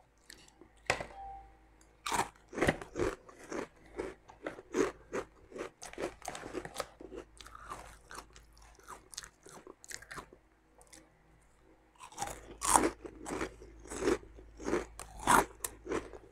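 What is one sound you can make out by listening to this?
A young woman crunches crisps loudly up close.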